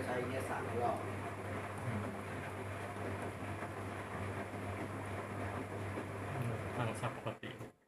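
A washing machine hums and churns steadily.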